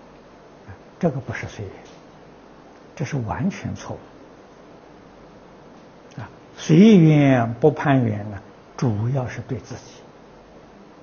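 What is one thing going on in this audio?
An elderly man speaks calmly and slowly into a close microphone, with pauses between phrases.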